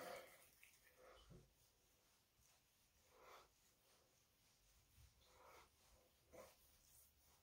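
Hands softly rub skin.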